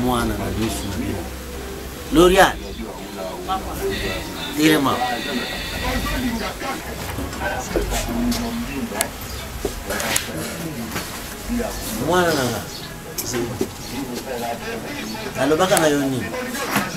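Men and women talk over one another nearby.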